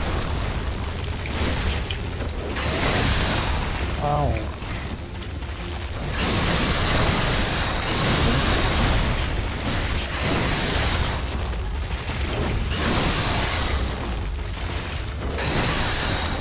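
Crackling electric bursts fizz and snap loudly.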